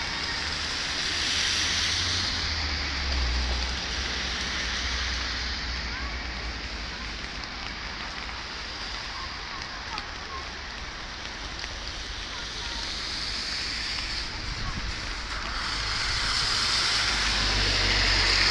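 A swollen river rushes and roars steadily.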